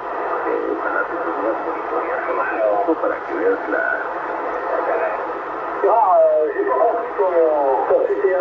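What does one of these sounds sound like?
A radio receiver hisses and warbles with distorted transmissions through its loudspeaker.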